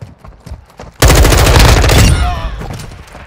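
A rifle fires a loud burst of rapid shots.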